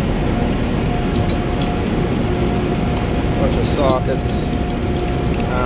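Metal tools clink softly as a hand shifts them.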